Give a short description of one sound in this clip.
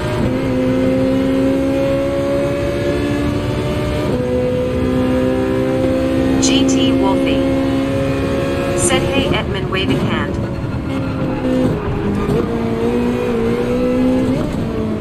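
A racing car engine whines at high revs, shifting gears.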